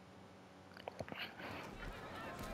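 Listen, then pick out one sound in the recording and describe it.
Handcuffs click shut.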